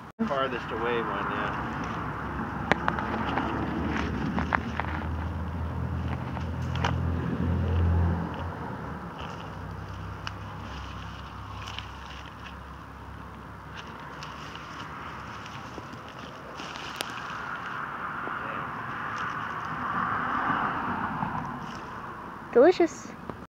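Leaves rustle and swish close by.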